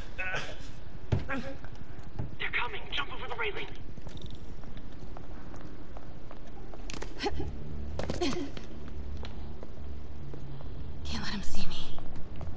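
A person's footsteps run and scuff on a stone floor.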